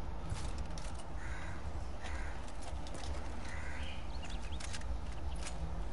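Leaves and branches rustle as someone pushes through a bush.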